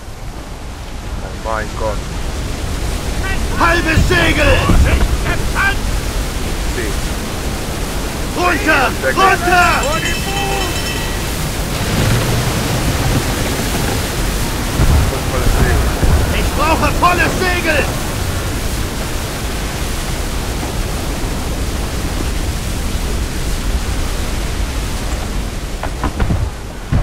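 Heavy waves crash and roll against a ship's hull.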